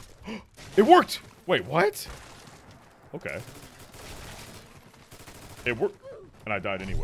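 Rapid gunfire crackles from a game.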